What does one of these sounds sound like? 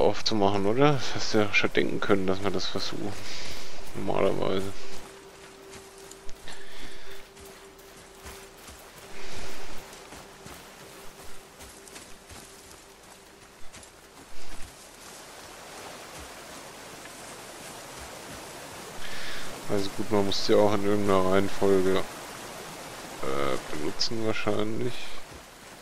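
Heavy footsteps tread over grass and stone.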